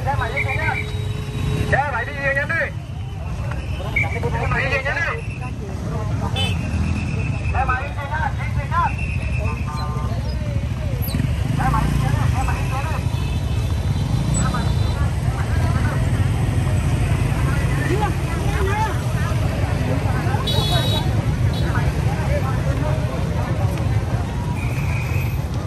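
Motorbike engines rumble nearby.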